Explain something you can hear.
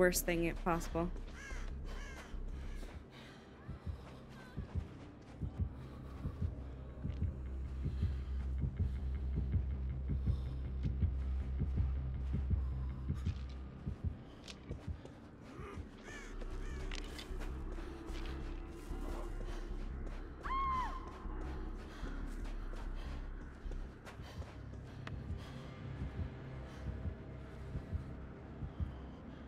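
Footsteps run quickly over sandy ground.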